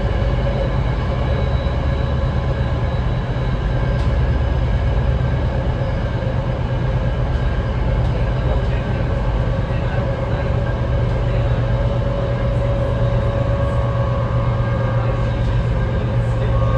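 A train's wheels whine and hum on the rails.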